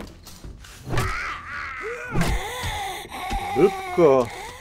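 A spiked club strikes with heavy thuds.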